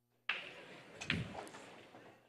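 Pool balls knock together.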